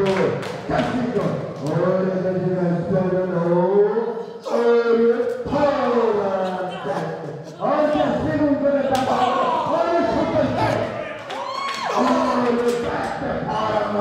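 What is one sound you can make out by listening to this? Bodies thud heavily onto a wrestling ring's canvas.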